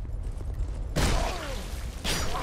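A weapon strikes with a heavy metallic clash.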